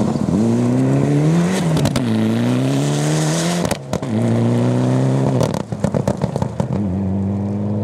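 Gravel sprays and rattles against the ground as a car slides past.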